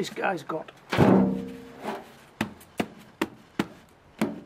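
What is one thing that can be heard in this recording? Plastic plant pots knock together as they are stacked.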